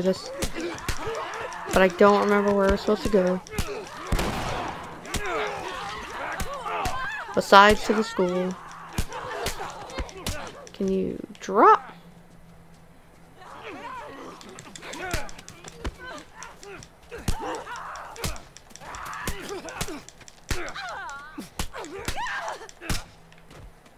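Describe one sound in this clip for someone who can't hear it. Men grunt and groan while fighting.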